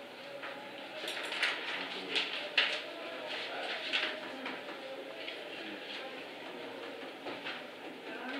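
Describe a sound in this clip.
Paper sheets rustle and flip.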